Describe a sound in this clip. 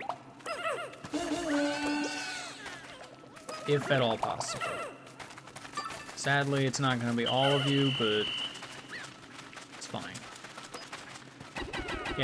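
Small cartoon creatures chirp and squeak in high voices.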